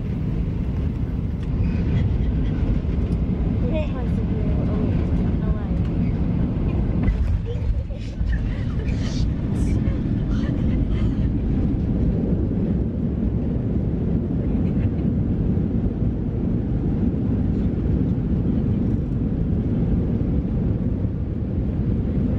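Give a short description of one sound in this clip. Young women talk and laugh close by, a little muffled.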